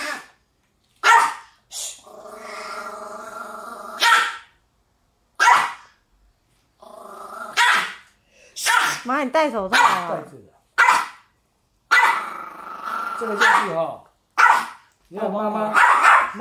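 A man scolds sternly and firmly nearby.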